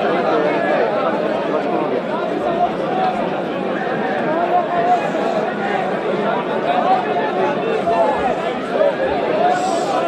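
A large crowd of men murmurs and talks loudly outdoors.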